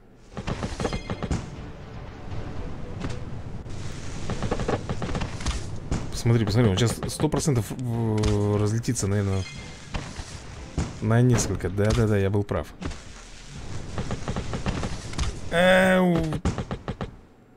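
Game explosions and blasts crackle repeatedly.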